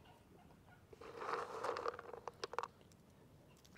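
A duck's feet rustle through dry straw.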